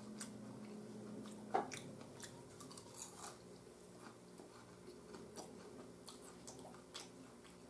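A fork scrapes and clicks against a plate.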